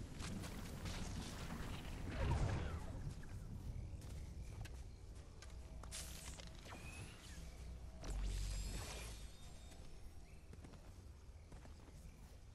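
Footsteps patter quickly over grass and soil.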